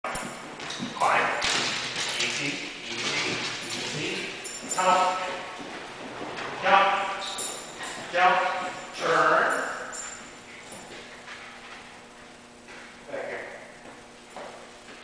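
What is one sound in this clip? A man calls out with animation to a dog in a large echoing hall.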